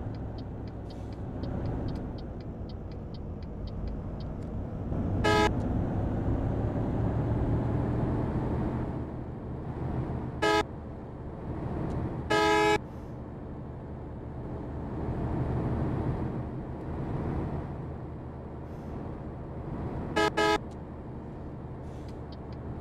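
A bus engine rumbles steadily.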